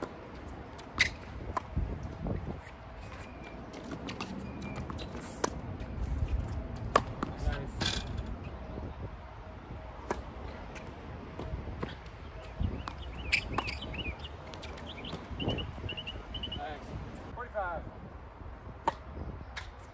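A tennis ball is struck back and forth with sharp pops of the rackets.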